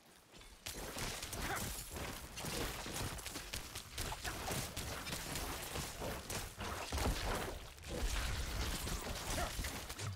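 Rapid hits, slashes and bursts of combat sound clash with heavy low thuds.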